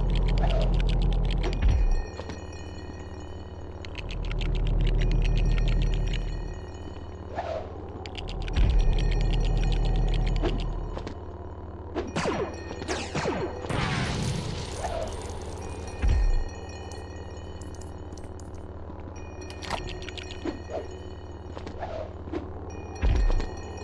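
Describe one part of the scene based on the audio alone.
Small plastic bricks clatter and tinkle as they scatter.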